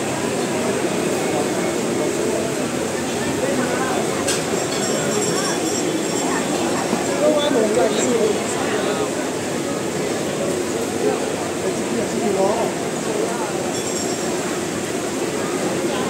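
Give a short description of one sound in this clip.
A crowd of people chatter around, outdoors.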